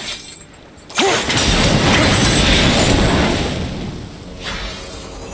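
A magic seal bursts with a roaring whoosh.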